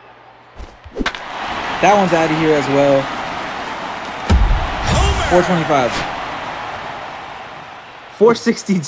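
A stadium crowd cheers loudly and slowly fades.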